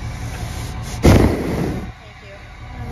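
A steer snorts and breathes close to the microphone.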